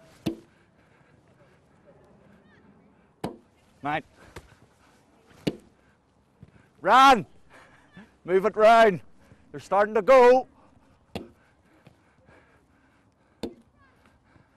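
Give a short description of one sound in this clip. Footballs thump as they are kicked and caught outdoors.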